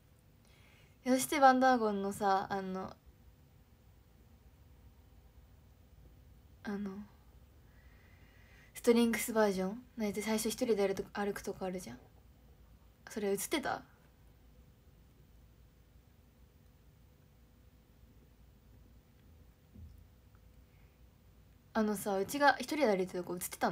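A young woman speaks calmly and close up, in short bursts with pauses.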